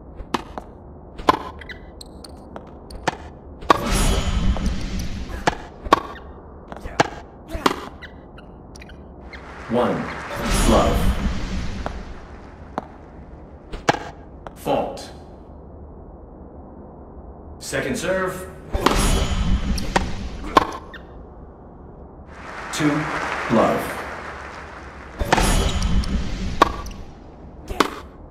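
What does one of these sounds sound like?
Tennis balls are struck with sharp pops.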